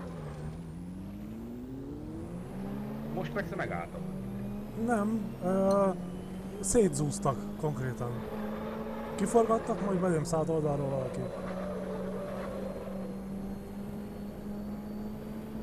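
A racing car engine roars steadily, rising in pitch and dropping as it shifts gears.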